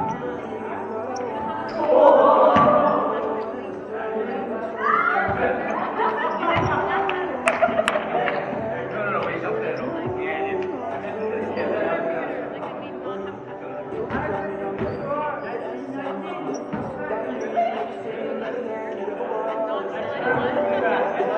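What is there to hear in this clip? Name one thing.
Sneakers squeak on the hard floor.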